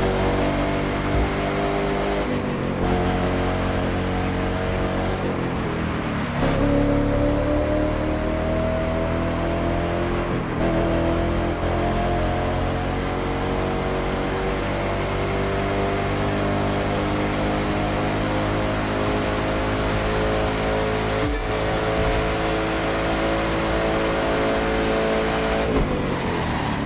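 A powerful sports car engine roars steadily at high speed.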